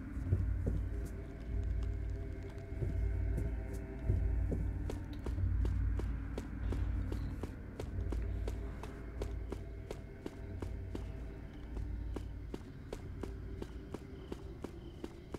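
Footsteps tap on a stone floor in an echoing corridor.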